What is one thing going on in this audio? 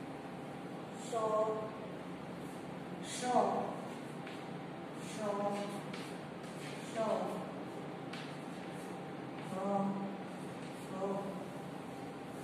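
A woman reads out syllables one at a time, close by.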